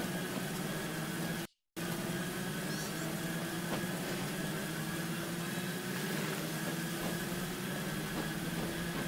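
A vehicle engine hums steadily as it drives along a wet road.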